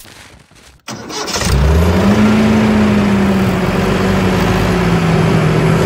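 A small tractor engine hums steadily.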